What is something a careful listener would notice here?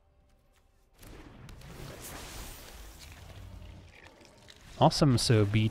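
A magical crackling whoosh sweeps by.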